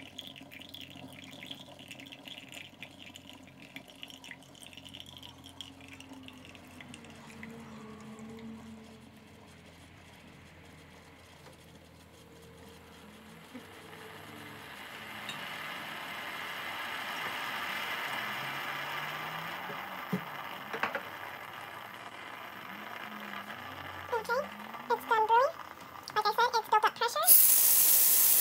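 Coffee streams and splashes into a cup.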